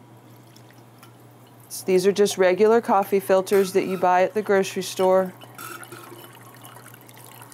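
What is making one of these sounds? Liquid pours from a jar into a funnel.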